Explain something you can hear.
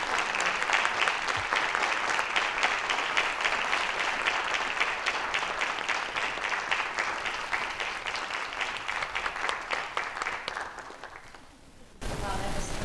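An audience applauds in a large hall, then the applause fades away.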